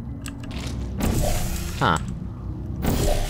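A ray gun fires with a sharp electric zap.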